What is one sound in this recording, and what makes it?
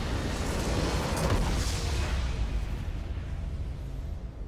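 A deep magical explosion booms and fades.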